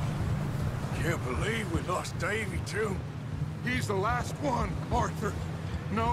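A second man answers in a low voice.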